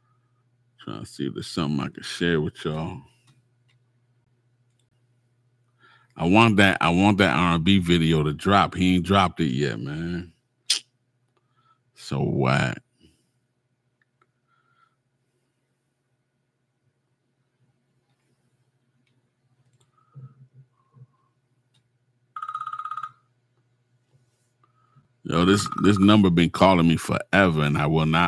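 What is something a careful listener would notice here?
A middle-aged man speaks with animation close to a microphone, with pauses.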